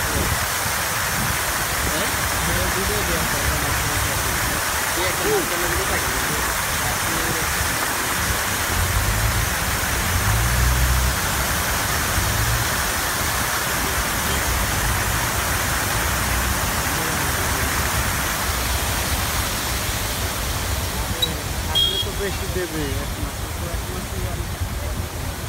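Fountain jets hiss and splash water into a pool.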